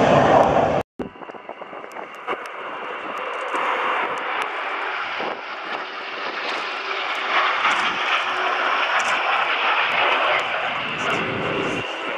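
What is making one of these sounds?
Jet engines rumble steadily as planes fly past high overhead.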